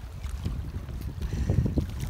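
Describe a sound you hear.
Small waves lap gently against a stony shore.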